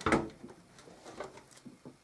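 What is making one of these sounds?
Hands bump and handle a metal computer case.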